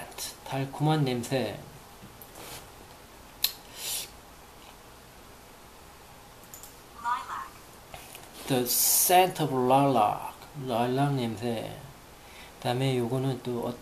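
A man speaks calmly and closely, in short phrases with pauses.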